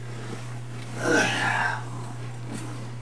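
A blanket rustles as it is pulled over a bed.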